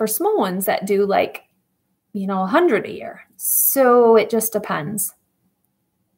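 A woman speaks calmly and earnestly, close to a microphone.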